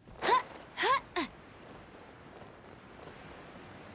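Wind rushes past during a glide.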